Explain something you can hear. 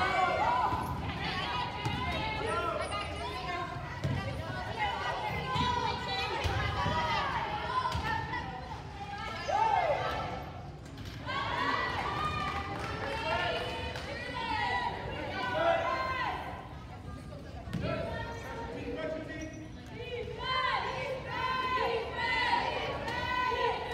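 Wheelchair tyres squeak sharply on a wooden court in a large echoing gym.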